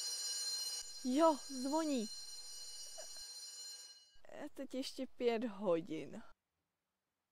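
A young woman speaks close by with animation, her voice rising and falling.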